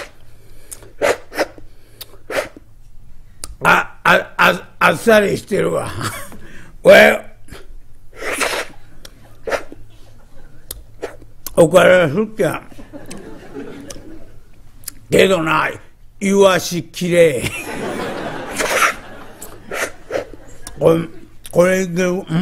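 A middle-aged man tells a story into a microphone, in a lively, theatrical voice.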